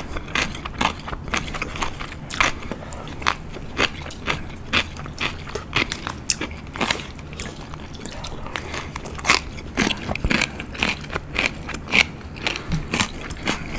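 A man chews food close to a microphone with wet, crunchy mouth sounds.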